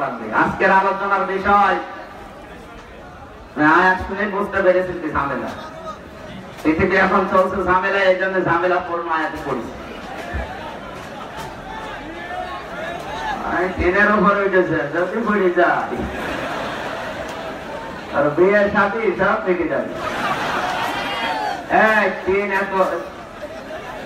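A young man chants in a melodic, sustained voice through a microphone and loudspeakers, in a large echoing space.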